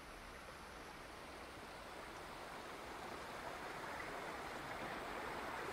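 A waterfall rushes, growing louder.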